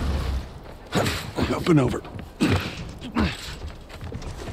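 A man climbs over a rattling wire fence.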